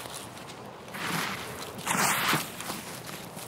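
Leaves and branches brush and rustle.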